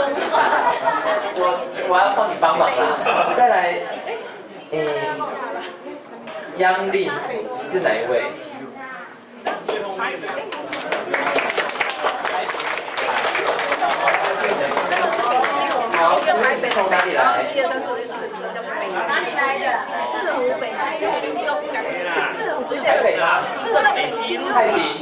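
A crowd of men and women chatter and laugh in a room.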